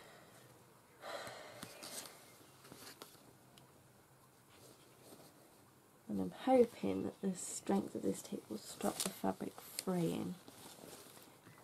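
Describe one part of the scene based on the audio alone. Fabric rustles and slides as it is moved and gathered up.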